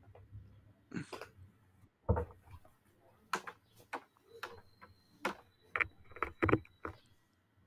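Knocks and bumps sound close to a microphone.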